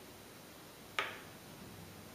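A chess piece is set down on a board with a sharp click.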